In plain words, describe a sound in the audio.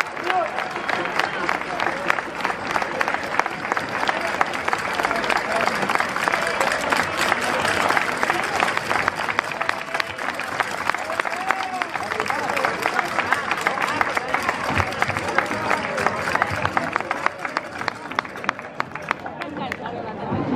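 A large crowd applauds outdoors.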